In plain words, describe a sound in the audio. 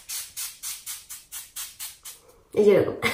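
A spray can hisses in quick short bursts close by.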